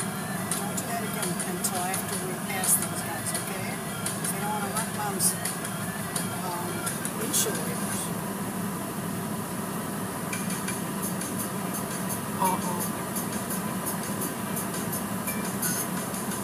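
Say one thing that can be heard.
Water sprays and splashes against a car's windscreen.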